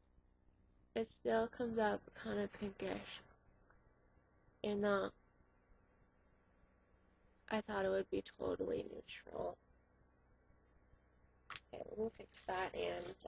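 A young woman talks close to the microphone, in short bursts.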